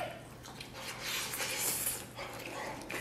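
A man blows on hot food.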